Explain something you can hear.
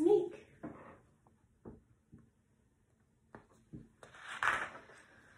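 A young woman reads aloud calmly, close by.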